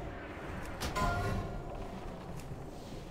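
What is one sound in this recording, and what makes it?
A dragon breathes fire with a roaring rush.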